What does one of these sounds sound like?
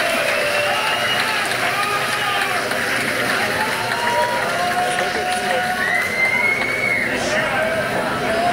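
Someone in a crowd whistles loudly.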